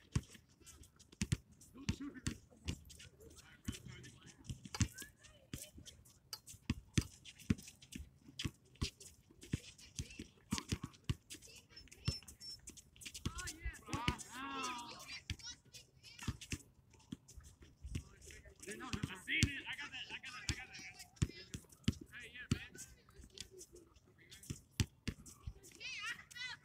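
A basketball bounces repeatedly on hard pavement.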